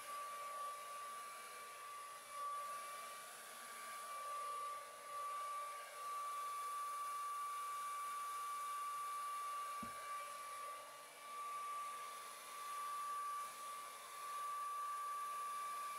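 A heat gun blows with a steady high whine.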